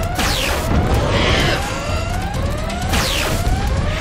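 An electric weapon crackles and buzzes.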